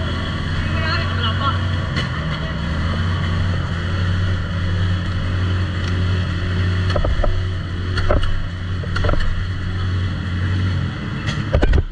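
A small petrol engine runs with a steady low drone, then cuts out.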